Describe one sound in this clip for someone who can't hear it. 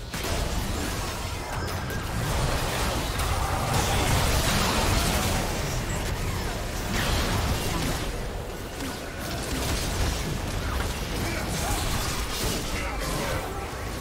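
Magic blasts and clashing blows crackle in a fast game battle.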